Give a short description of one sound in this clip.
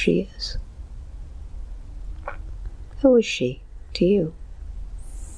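A young man moans softly, close to a microphone.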